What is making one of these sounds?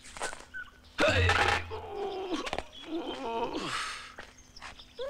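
A man grumbles in a cartoon voice.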